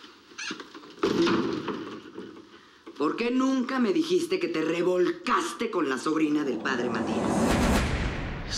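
A woman speaks sharply nearby.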